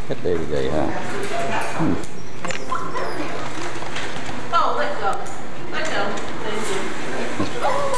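Wire cage doors rattle and clank.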